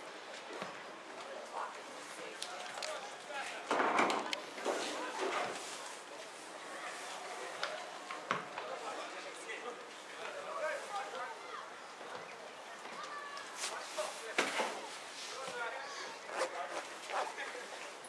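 Men talk nearby in the open air.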